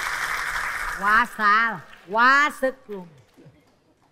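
A woman exclaims loudly in a drawn-out, sing-song voice through a microphone.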